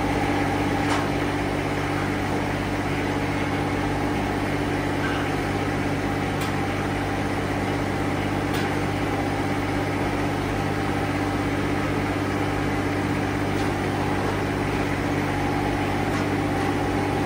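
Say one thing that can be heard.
A lever clicks sharply now and then.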